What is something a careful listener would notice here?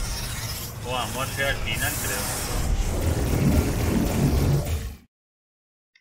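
A lift whooshes and rumbles loudly as it moves.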